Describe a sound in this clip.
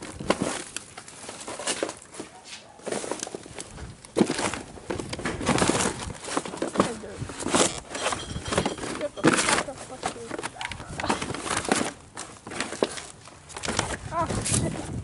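Cardboard boxes and plastic wrappers rustle and crinkle as they are moved.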